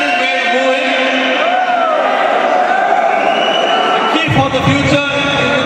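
A middle-aged man speaks into a handheld microphone, heard over loudspeakers in a large hall.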